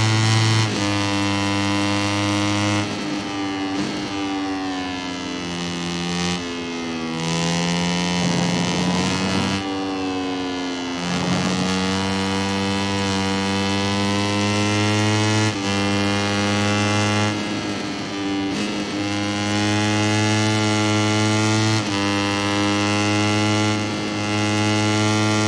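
A motorcycle engine screams at high revs, dropping as it brakes into bends and rising again as it speeds up.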